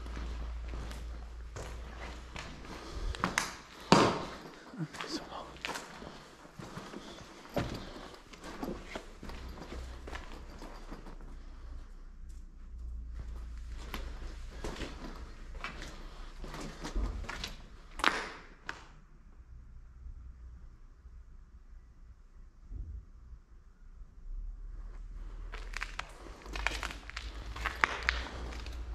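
Footsteps crunch over rubble and debris.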